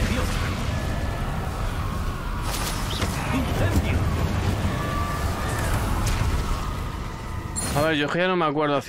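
Magic spells blast and crackle in a fight.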